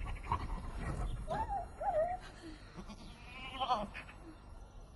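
A dog howls loudly, its voice rising and falling.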